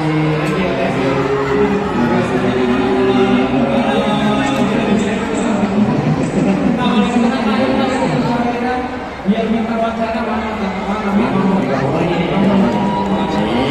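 A man speaks with animation through a microphone over loudspeakers in a large echoing hall.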